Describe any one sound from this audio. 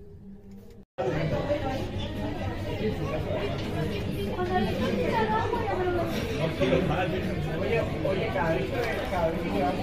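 Many people chatter at nearby tables in a busy room.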